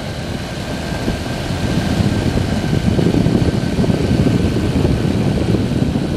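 A small aircraft engine drones steadily close by.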